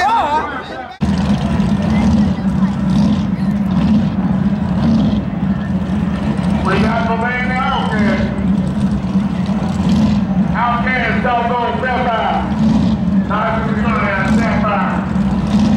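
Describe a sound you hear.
A car engine idles nearby with a low, steady rumble.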